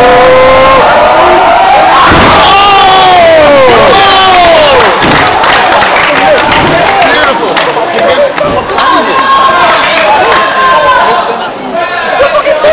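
A crowd cheers and shouts loudly close by in a large echoing hall.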